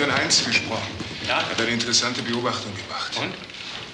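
An older man answers in a low voice.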